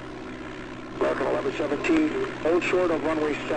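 A man speaks with animation into a headset microphone close by.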